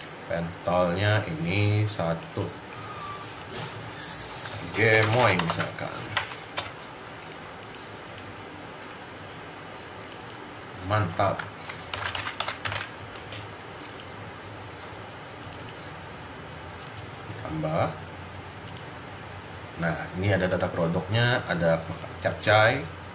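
A man talks calmly, close to a microphone, with pauses.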